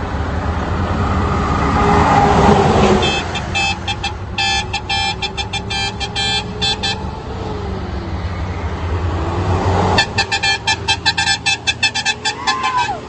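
Trucks roar past on the road.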